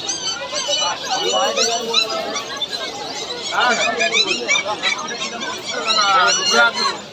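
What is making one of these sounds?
People chatter nearby in a busy outdoor crowd.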